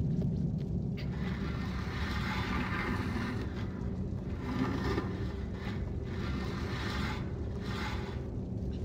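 A wooden chair scrapes and drags across a wooden floor.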